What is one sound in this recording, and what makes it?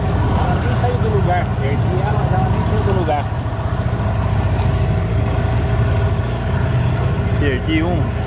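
A boat engine hums with a steady low throb.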